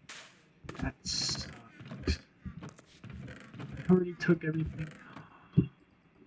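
A chest opens and closes with a wooden clunk.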